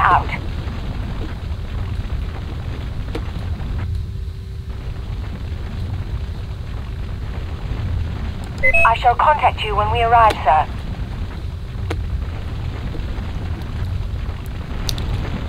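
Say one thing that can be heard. A vehicle engine hums low and steadily.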